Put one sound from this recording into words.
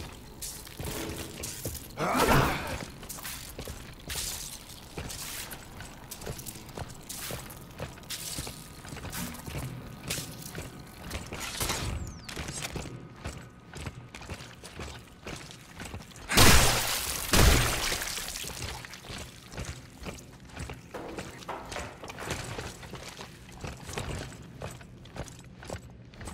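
Footsteps crunch slowly on a rough, gritty floor.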